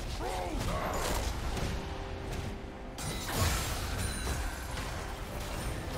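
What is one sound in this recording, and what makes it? Magic blasts and impacts crackle in a fierce battle.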